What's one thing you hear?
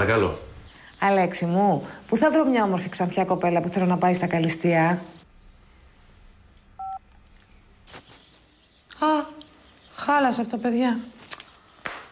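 A woman talks on a phone with animation.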